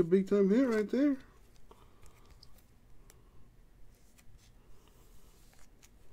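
A card slides into a stiff plastic sleeve with a soft rustle.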